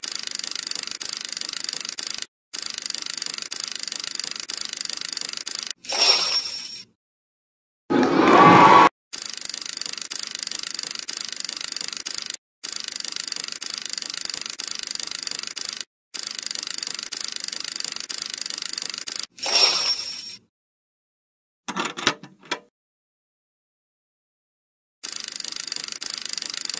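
An electronic slot game's reels spin with a looping whirring sound effect.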